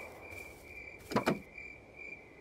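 A car trunk lid creaks open with a thud.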